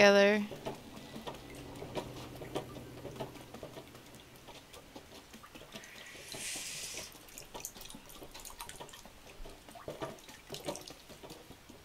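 A cat's paws patter softly on the floor.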